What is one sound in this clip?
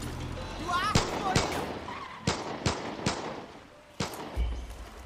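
A heavy gun fires a series of loud, sharp shots.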